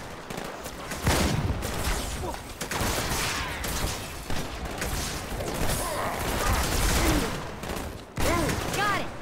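Impacts and blasts boom loudly close by.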